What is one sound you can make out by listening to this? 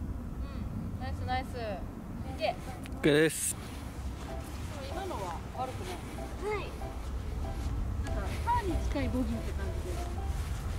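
Young women chat and exclaim nearby.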